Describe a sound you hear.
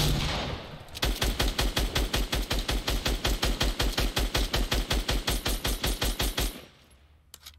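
A pickaxe strikes wood in a rapid, even rhythm.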